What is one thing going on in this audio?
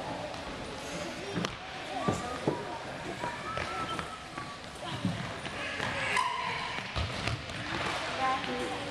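Sneakers squeak on a hard court in a large echoing gym.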